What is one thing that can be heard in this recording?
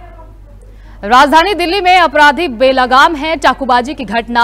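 A young woman reads out clearly through a microphone.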